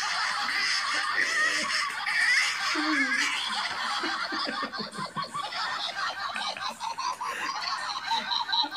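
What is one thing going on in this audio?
A young man shouts and wails loudly, heard through a phone's microphone.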